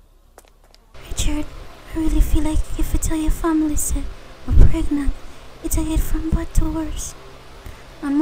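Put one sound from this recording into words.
A young woman speaks with a whiny, upset voice, close by.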